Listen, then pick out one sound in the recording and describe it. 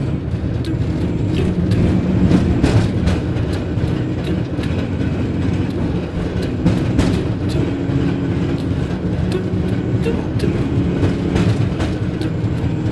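A gondola cabin rumbles and rattles as it rides along a cable.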